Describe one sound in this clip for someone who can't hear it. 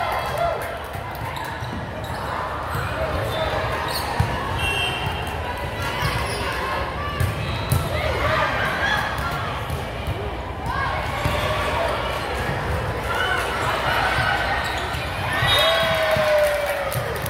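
Young women call out and chatter across the gym.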